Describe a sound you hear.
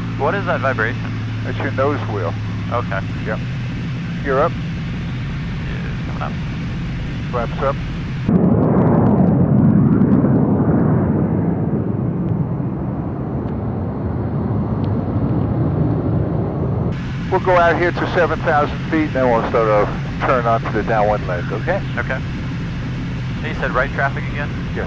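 A jet engine hums steadily in a cockpit.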